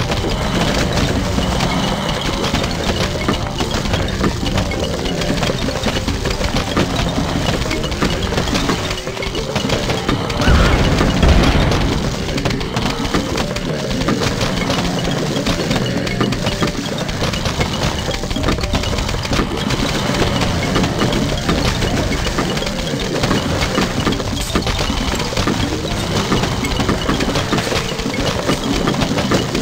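Rapid popping shots and splats from a game's plants firing go on without pause.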